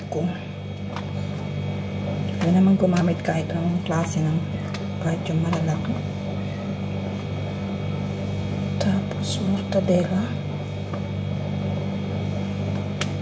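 Chopped vegetables rustle and tap into a plastic bowl.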